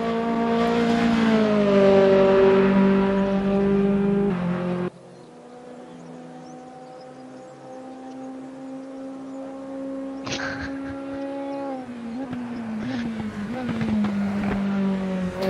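A racing car engine roars and drones steadily, its pitch shifting as the car speeds along.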